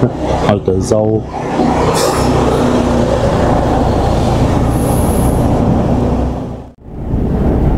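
A heavy transporter engine rumbles as the vehicle rolls slowly past in a large echoing hall.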